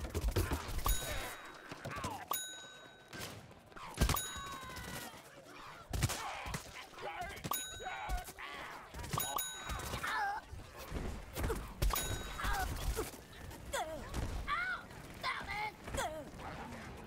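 Cartoonish shots fire in quick bursts with sharp pops.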